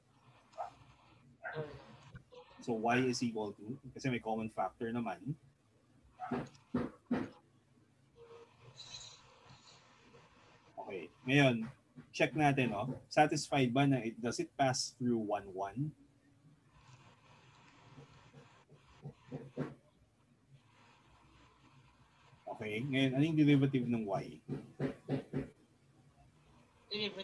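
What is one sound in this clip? A man explains calmly and closely into a microphone, with pauses.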